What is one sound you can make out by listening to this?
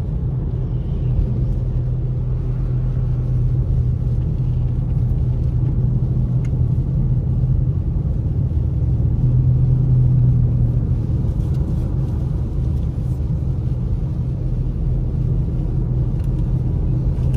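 Tyres rumble and hiss over a snowy road.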